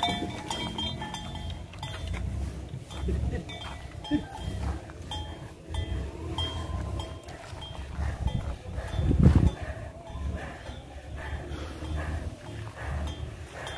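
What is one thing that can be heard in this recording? A heavy log scrapes and thuds along a dirt track.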